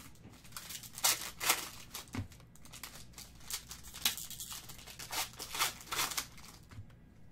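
Foil wrappers crinkle and tear as a pack is ripped open.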